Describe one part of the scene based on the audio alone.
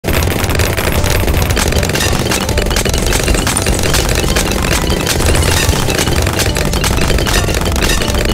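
Balloons pop rapidly over and over.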